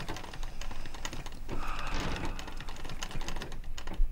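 An older man speaks slowly and wearily close by.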